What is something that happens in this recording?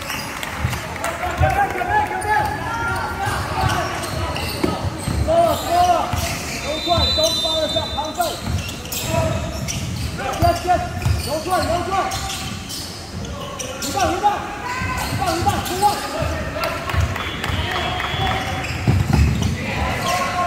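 Young men shout to each other during play.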